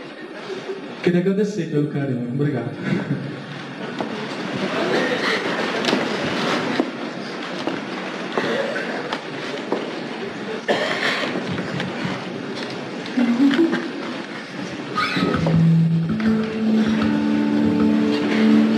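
A man speaks into a microphone with animation, heard through loudspeakers in a large hall.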